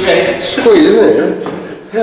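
Footsteps climb wooden stairs.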